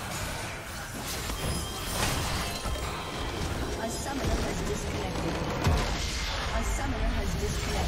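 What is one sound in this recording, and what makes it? Game spell effects crackle and burst as a battle rages.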